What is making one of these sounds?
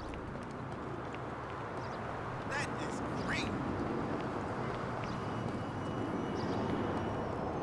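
Footsteps patter quickly on stone steps.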